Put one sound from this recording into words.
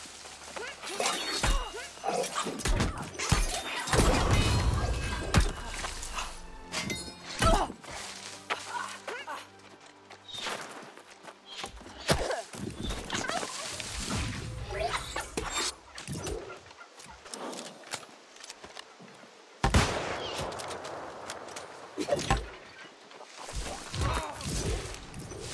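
Weapons strike and thud in a close fight.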